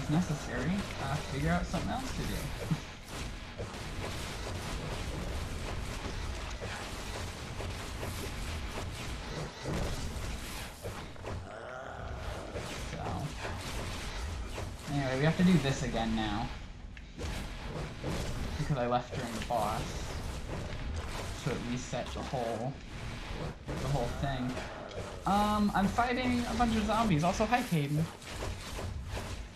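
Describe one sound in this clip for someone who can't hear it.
Game combat sounds clash and whoosh.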